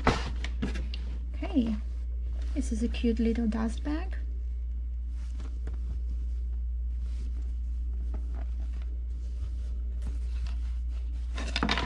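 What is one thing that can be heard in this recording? A cloth bag rustles as hands handle it.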